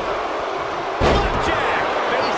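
A body slams hard onto a wrestling mat.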